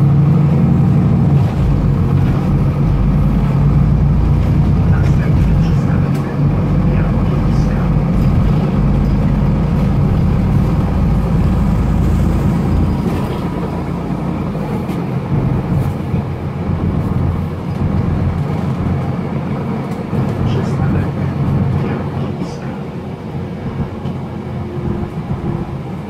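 A bus rattles and clatters as it rolls along.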